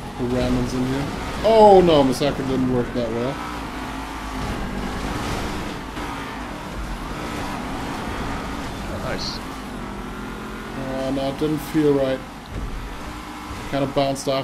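A race car engine roars at high revs.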